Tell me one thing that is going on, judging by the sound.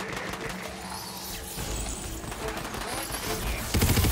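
A magic spell hums and crackles.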